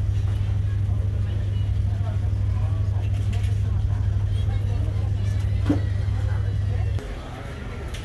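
A ship's engine hums low and steady.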